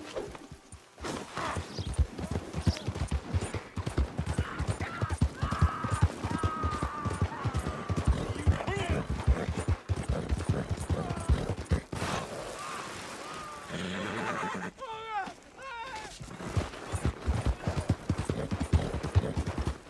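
A horse gallops with quick, rhythmic hoofbeats on a dirt road.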